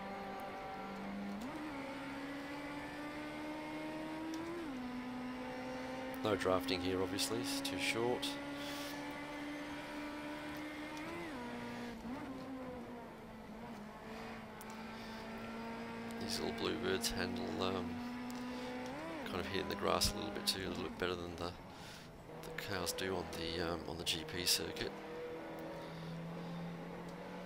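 A racing car engine drones steadily and shifts pitch as it changes gear.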